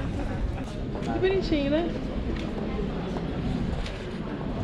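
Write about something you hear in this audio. A woman talks close by.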